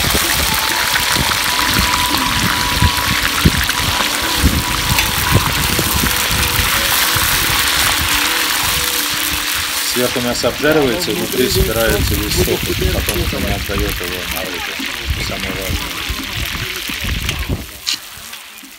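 Meat sizzles loudly in hot oil.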